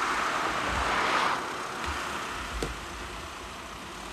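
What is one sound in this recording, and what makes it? An ambulance van drives off along an asphalt road.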